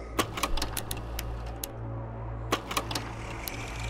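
Short sharp menu clicks tick one after another.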